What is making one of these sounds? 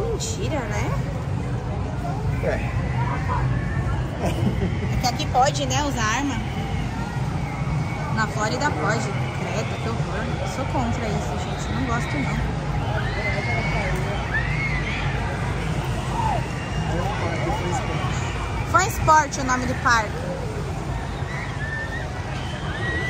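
Young girls chatter and talk nearby, outdoors.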